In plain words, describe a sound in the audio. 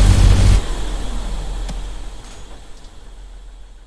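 An explosion bursts loudly and rumbles away.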